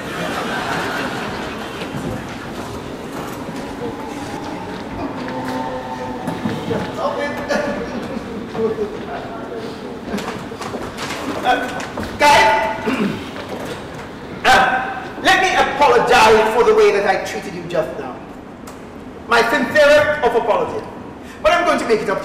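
A man speaks loudly and with animation in an echoing hall.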